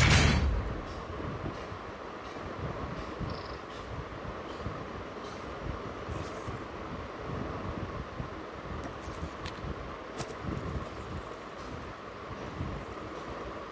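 Dry grass rustles as a soldier crawls through it.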